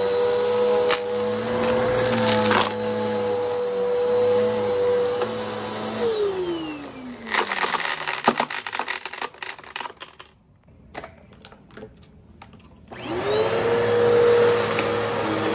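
A vacuum cleaner motor whines loudly and steadily.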